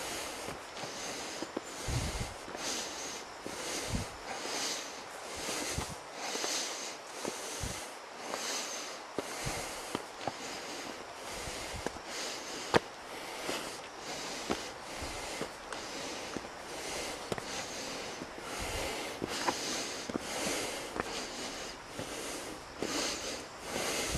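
Footsteps climb stone steps at a steady pace.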